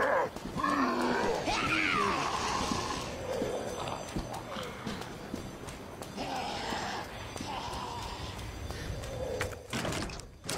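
Footsteps run quickly on a hard wet surface.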